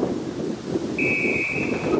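A referee's whistle blows a short steady blast.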